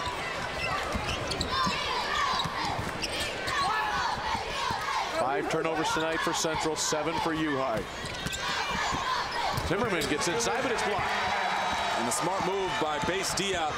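A crowd cheers and murmurs in a large echoing arena.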